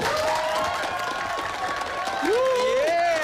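A crowd claps.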